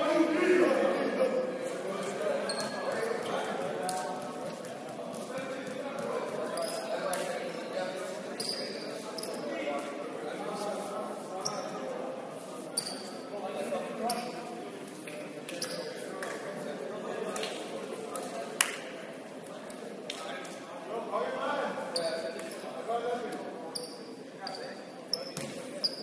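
Sneakers squeak sharply on a hardwood court, echoing in a large hall.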